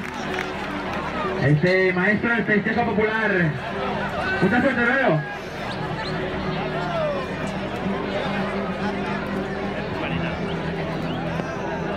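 A large outdoor crowd chatters steadily.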